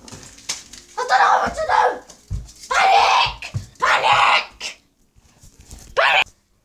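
A young boy shouts loudly and excitedly close by.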